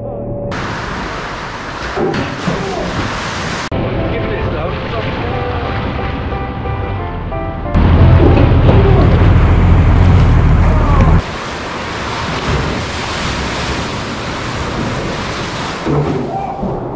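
Waves surge and echo inside a rock cave.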